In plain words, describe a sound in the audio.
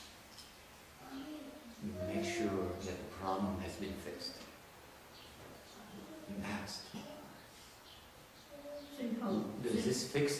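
An elderly man speaks calmly and slowly into a microphone, in bursts with pauses.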